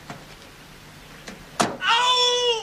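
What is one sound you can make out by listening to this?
A car door latch clicks.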